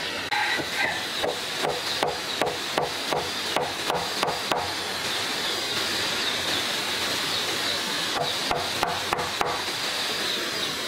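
A mallet knocks on a chisel cutting into wood, in quick repeated blows.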